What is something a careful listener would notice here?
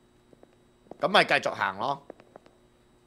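A young man speaks with animation, close to a headset microphone.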